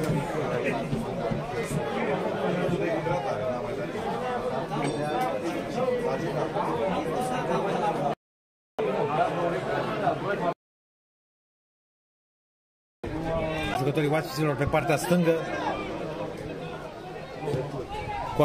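A crowd of spectators chatters nearby, outdoors.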